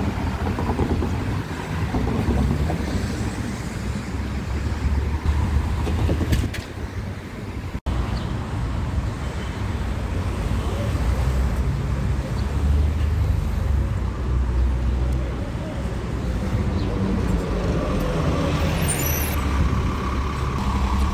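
Traffic rumbles past steadily outdoors.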